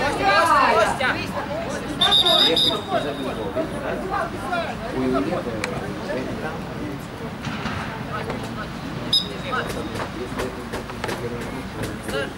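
Footballers shout and call to each other across an open field.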